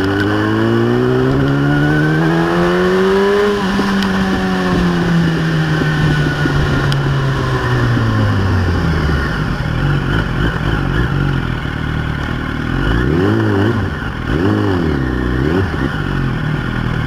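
A motorcycle engine revs up and shifts gears as it rides.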